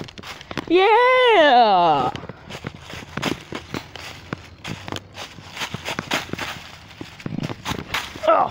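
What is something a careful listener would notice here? Footsteps crunch over leaves and gravel.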